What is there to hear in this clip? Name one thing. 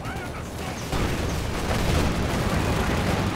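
Explosions boom in a game's battle.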